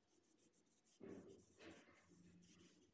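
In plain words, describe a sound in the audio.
The pages of a book rustle as the book is shifted by hand.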